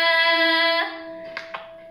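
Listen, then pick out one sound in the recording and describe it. A young girl sings a long held note loudly and close by, and it fades away with an echo.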